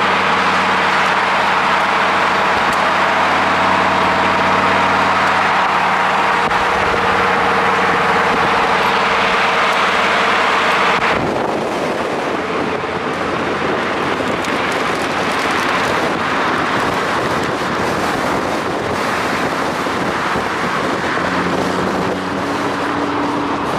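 Tyres roar on the road with rushing wind.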